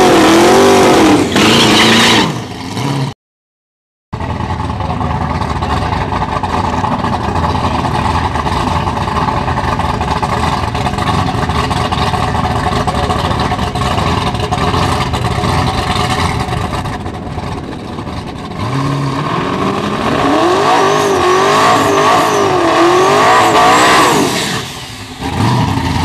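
A supercharged V8 drag car revs hard during a burnout.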